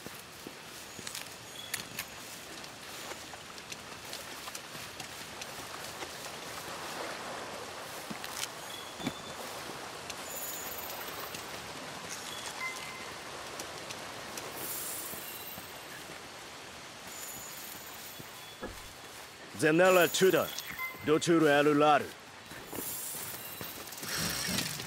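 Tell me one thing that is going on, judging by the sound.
Footsteps patter over soft ground.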